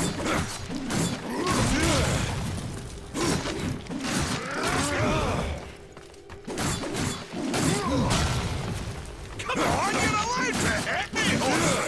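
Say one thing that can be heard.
Blades swing and clash with metal strikes in a fight.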